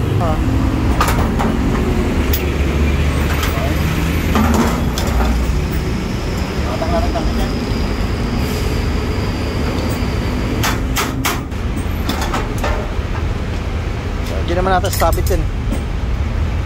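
Metal tools clank against a metal panel.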